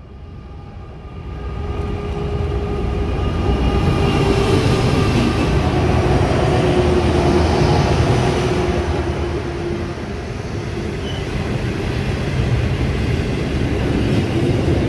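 A heavy freight train rumbles and clatters past close by.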